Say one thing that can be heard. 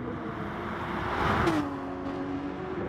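A racing car engine whooshes past close by.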